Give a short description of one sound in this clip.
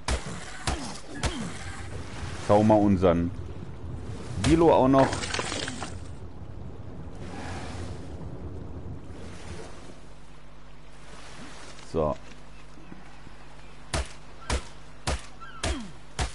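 A hatchet chops into flesh with sharp thuds.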